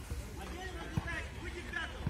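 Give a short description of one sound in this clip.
A football is kicked.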